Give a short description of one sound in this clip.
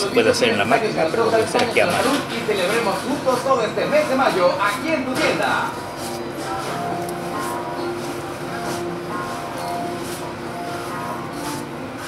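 Hands knead and slap soft dough on a wooden board.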